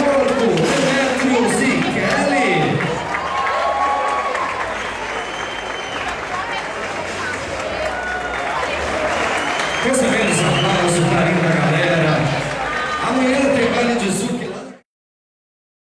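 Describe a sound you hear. A crowd cheers and shouts in a large hall.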